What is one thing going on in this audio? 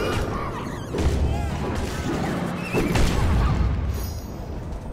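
Loud explosions boom and crackle.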